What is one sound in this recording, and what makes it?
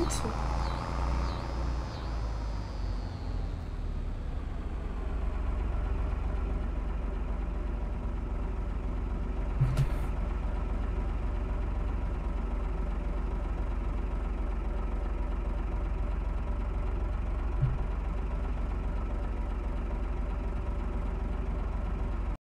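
A tractor engine hums steadily at idle.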